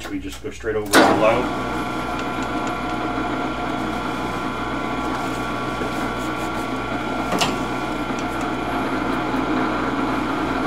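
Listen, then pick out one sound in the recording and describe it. A metal lathe whirs steadily as its spindle spins.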